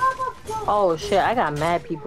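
A pickaxe strikes a metal shelf.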